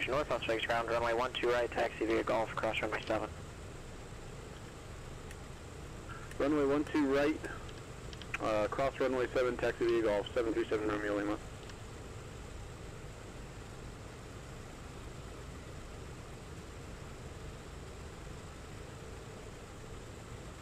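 Aircraft engines hum low and steady.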